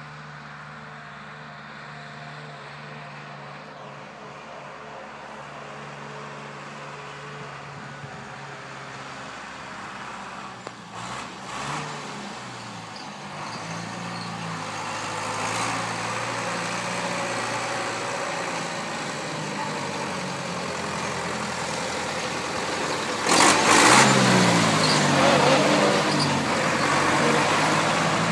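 A tractor engine rumbles steadily, growing louder as it approaches.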